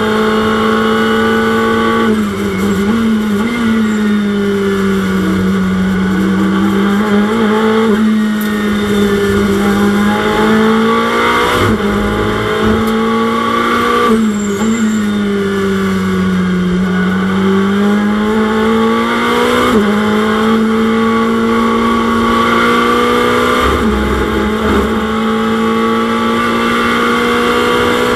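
A racing car engine roars loudly, its pitch dropping and climbing with sharp gear shifts.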